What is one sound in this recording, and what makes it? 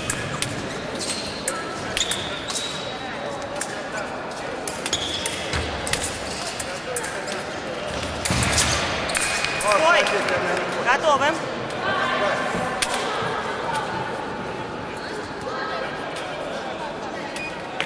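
Shoes squeak and thud on a hard floor as a fencer moves.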